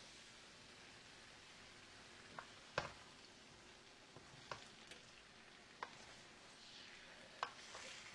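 A wooden spoon stirs and scrapes food in a pan.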